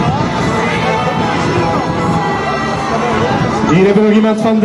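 People chatter and cheer in the background outdoors.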